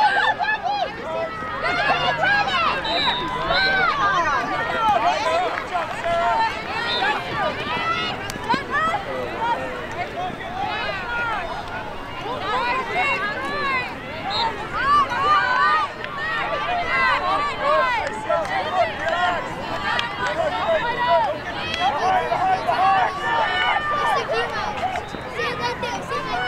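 A crowd of spectators chatters and cheers in the distance.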